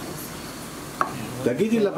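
A lid clinks against a pot.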